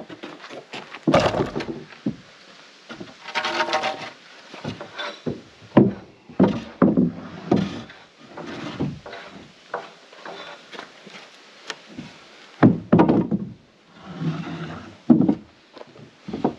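Wooden boards knock and thud as they are moved.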